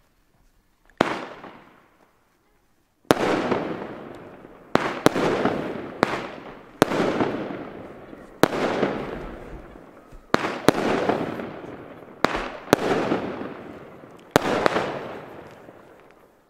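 Fireworks burst with loud sharp bangs that echo and fade.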